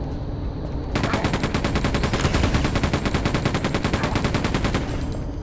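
A machine gun fires in a rapid, steady burst.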